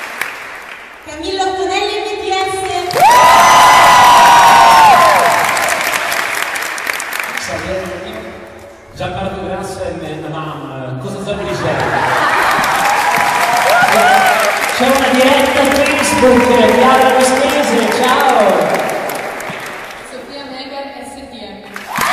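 A young man speaks calmly through a microphone and loudspeaker in a large echoing hall.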